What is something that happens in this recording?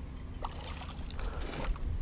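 A fish splashes in the water.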